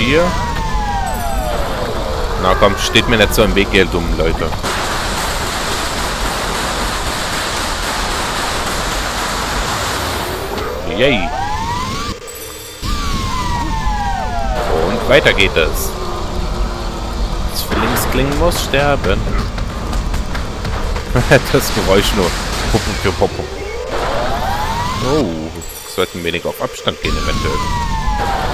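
A magic spell sweeps with a falling, ringing whoosh, again and again.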